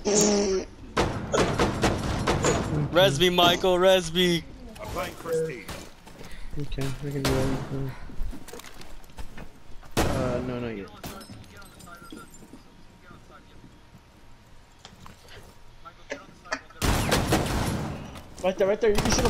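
Rapid gunshots crack at close range.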